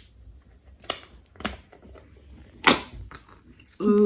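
A plastic lid pops off a tub.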